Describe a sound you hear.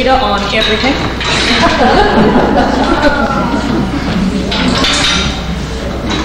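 A woman laughs heartily nearby.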